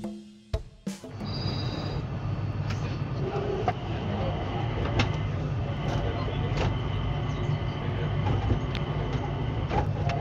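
A train rumbles steadily along a track.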